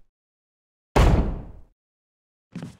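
A heavy wooden door thuds shut.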